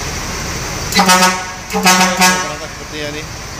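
A bus horn blares in two loud, short blasts.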